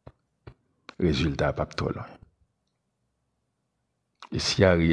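A man speaks calmly and close into a microphone.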